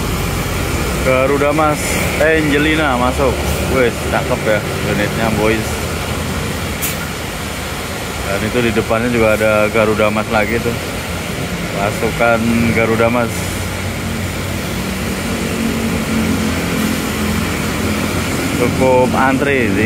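A bus horn plays a loud, wavering musical tune in short bursts.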